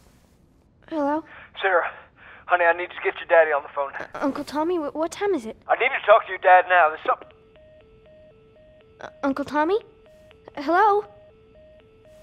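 A young girl speaks anxiously into a telephone.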